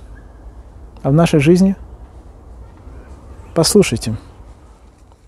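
A man speaks calmly and close through a clip-on microphone.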